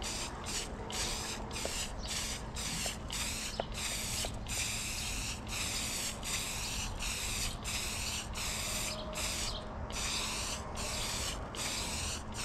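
A spray can hisses in repeated short bursts close by.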